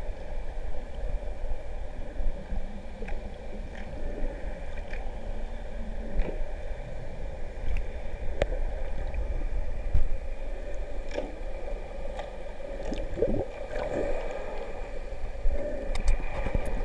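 Water rumbles low and crackles with faint clicks, heard from below the surface.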